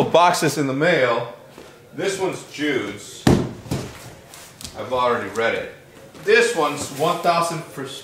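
A cardboard box scrapes and thumps as a man moves it.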